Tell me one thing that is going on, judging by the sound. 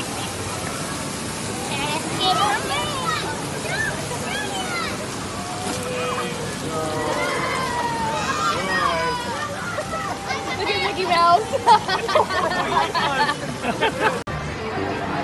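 Water churns and splashes steadily.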